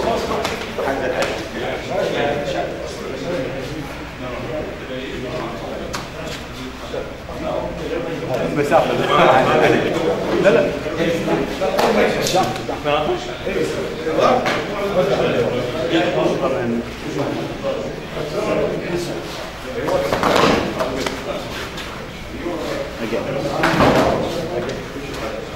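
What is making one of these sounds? A man talks calmly nearby, explaining.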